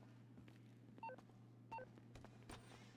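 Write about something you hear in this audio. A phone beeps twice.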